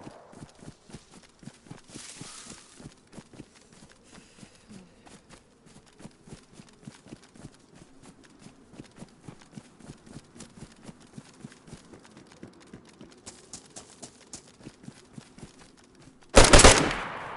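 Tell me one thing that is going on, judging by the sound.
Footsteps crunch quickly through grass and gravel.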